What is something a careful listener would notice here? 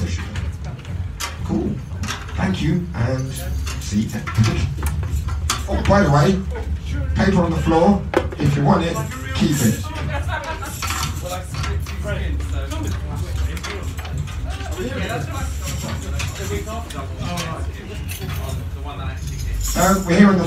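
A crowd of men and women talk and call out all around.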